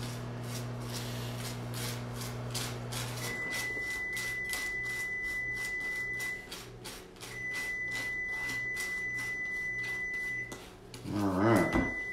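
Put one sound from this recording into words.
A knife scrapes spread across a bagel.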